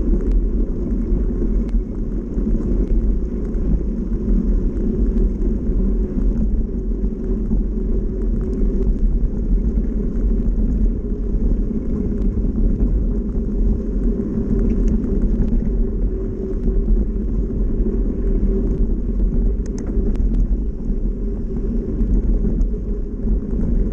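Bicycle tyres crunch and rumble over a dirt track.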